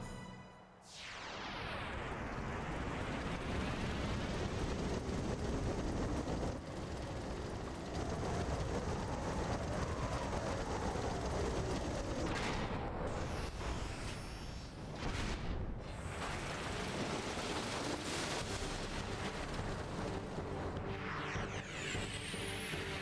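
A huge machine rumbles and whirs loudly.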